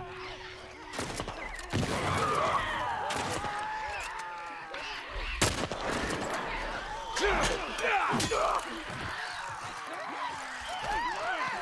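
Rifle shots bang loudly, one after another.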